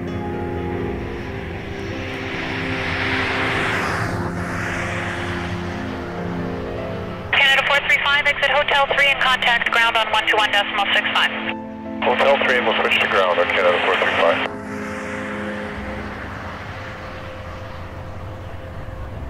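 A jet airliner's engines roar and whine steadily as it approaches.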